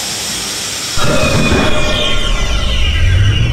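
A subway train rumbles and screeches as it pulls into a station.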